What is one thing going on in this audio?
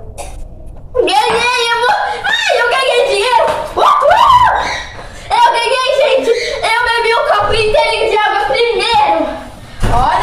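A young girl sings loudly and with animation close by.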